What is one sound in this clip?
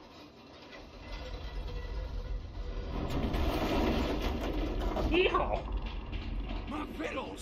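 A mine cart rumbles along metal rails.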